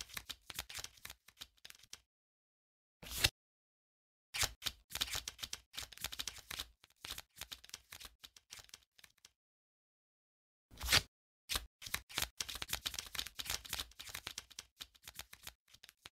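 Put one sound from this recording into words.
Paper tiles flip over one after another with soft, rustling clicks.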